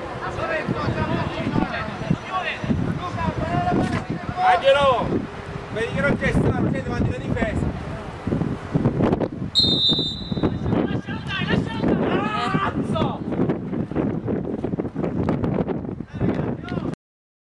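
Young men shout and call to each other outdoors, some way off.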